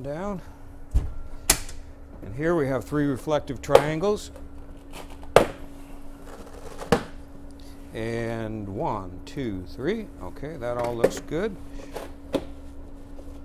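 Plastic latches click and snap as a case is opened and closed.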